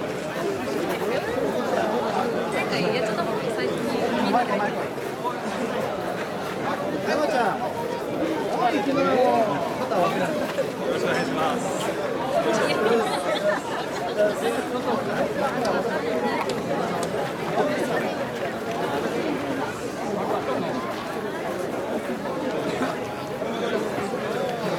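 A crowd of men and women chant and shout together outdoors.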